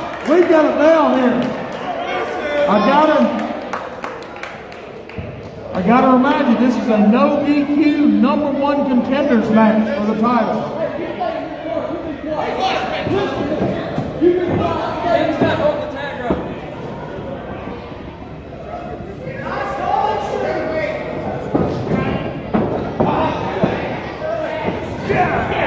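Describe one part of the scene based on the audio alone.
A crowd of children and adults shouts and cheers in a large echoing hall.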